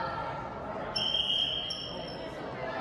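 A referee blows a shrill whistle.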